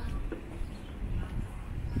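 Footsteps scuff on a paved street.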